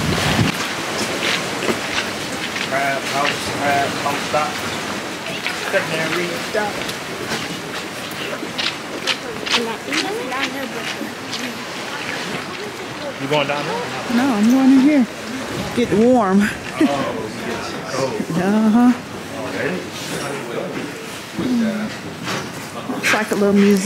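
Several adults chat casually nearby.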